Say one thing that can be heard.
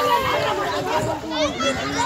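A girl splashes water with her hand.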